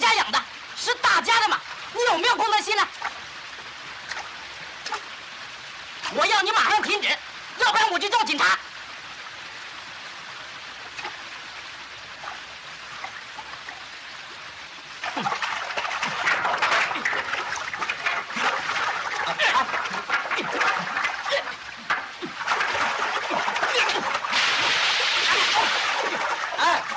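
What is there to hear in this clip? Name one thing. A river flows and rushes over rocks.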